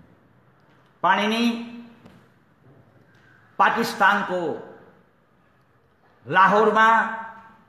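An elderly man sings loudly into a microphone in long phrases with pauses.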